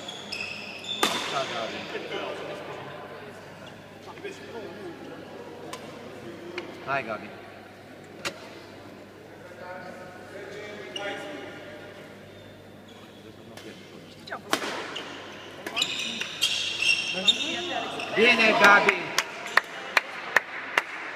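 Badminton rackets strike a shuttlecock with sharp pops in an echoing hall.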